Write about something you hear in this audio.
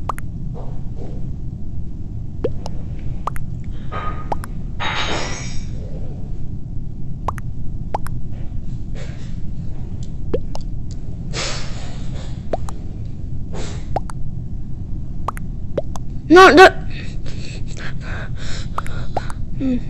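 Phone keys click softly as a message is typed.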